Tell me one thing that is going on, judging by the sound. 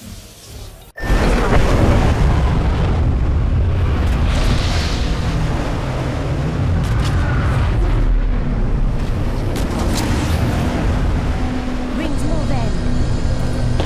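Wind rushes loudly and steadily during a fall through the air.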